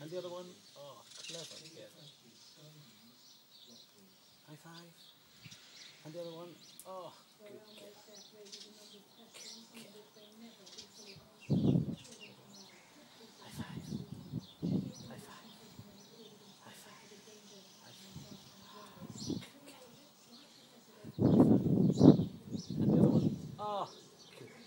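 A man talks softly and encouragingly to a dog close by.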